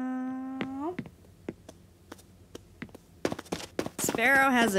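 Footsteps tap quickly across a floor.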